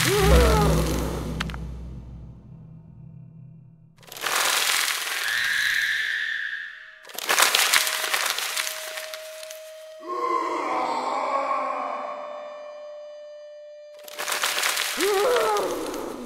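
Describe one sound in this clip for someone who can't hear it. A game's magical sound effects whoosh and crash in loud bursts.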